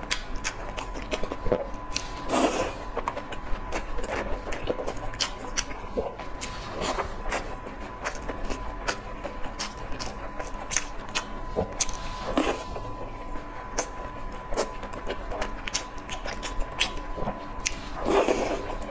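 A young woman chews food with wet, squishy sounds close to a microphone.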